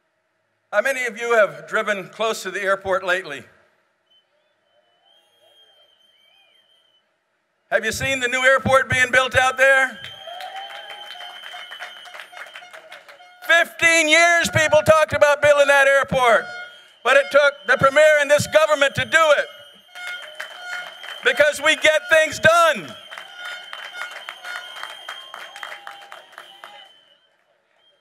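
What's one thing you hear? An elderly man speaks forcefully through a microphone and loudspeakers in a large echoing hall.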